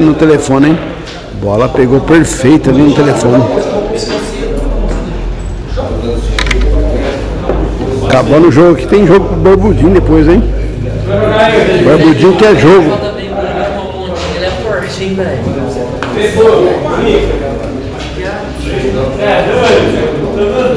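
Several men talk and chat nearby.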